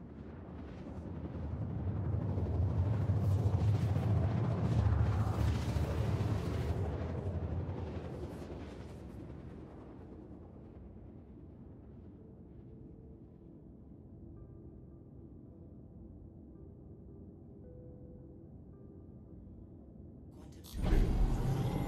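A spaceship engine roars loudly, then settles into a low hum.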